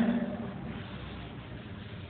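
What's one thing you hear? A cloth rubs across a chalkboard.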